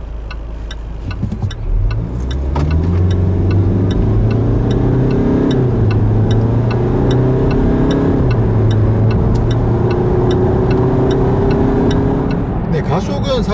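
A car engine revs up hard as the car accelerates, rising and falling through the gears.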